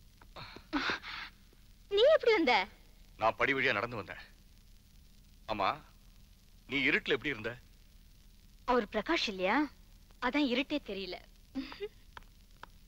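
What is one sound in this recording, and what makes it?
A young woman talks playfully nearby.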